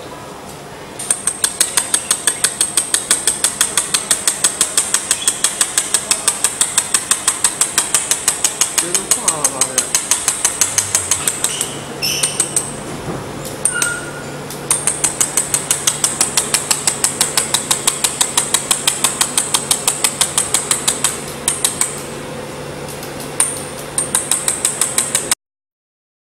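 A laser welder fires rapid, evenly spaced snapping pulses, with short pauses now and then.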